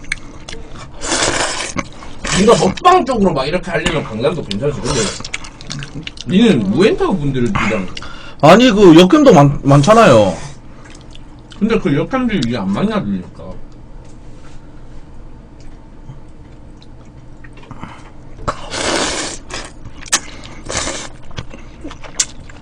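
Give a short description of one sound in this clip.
A man slurps noodles loudly.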